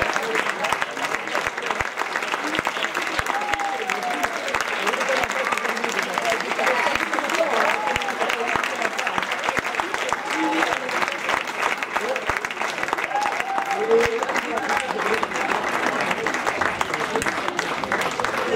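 An audience applauds loudly throughout in a large echoing hall.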